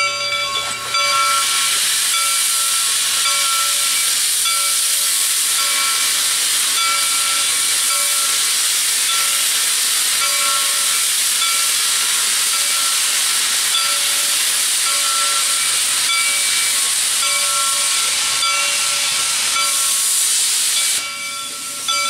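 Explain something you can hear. Steam hisses loudly from a locomotive's cylinders.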